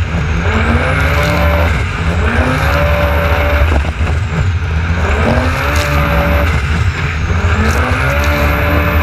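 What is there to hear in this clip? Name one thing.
Strong wind rushes past outdoors.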